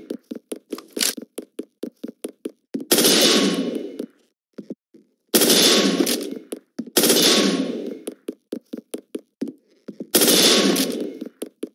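A rifle is reloaded with a metallic click.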